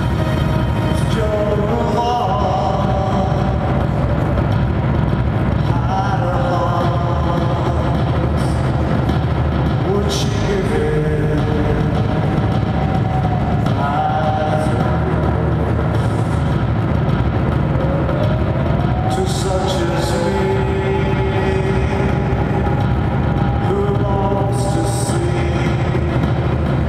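A man sings loudly into a microphone in an echoing hall.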